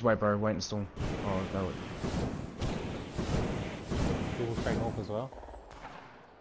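A jetpack roars with a rushing hiss.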